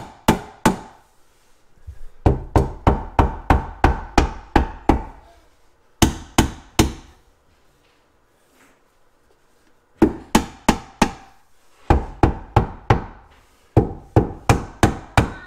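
A rubber mallet taps repeatedly on wood in quick bursts.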